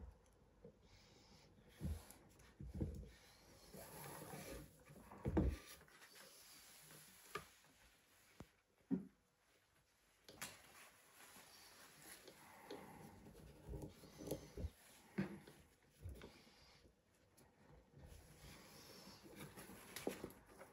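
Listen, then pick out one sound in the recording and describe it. Cord rustles and rubs as hands weave it close by.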